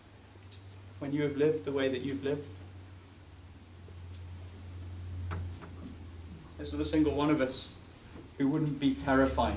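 A young man speaks calmly in an echoing room, with long pauses.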